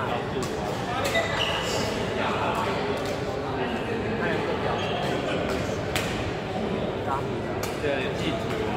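Badminton rackets strike a shuttlecock with sharp pops, echoing in a large hall.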